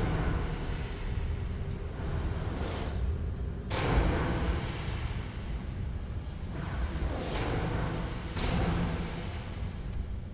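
Footsteps tread on a stone floor in a large echoing space.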